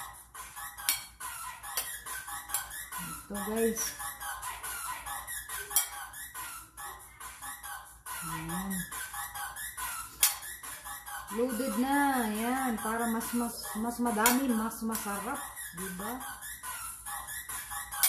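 A metal spoon scrapes and taps against a bowl.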